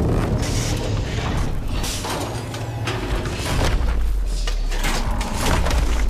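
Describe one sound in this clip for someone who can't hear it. A huge metal machine crashes and grinds through the sand with a deep rumble.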